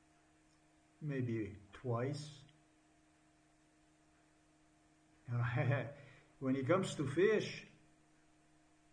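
A middle-aged man speaks calmly and close to a microphone, in short bursts.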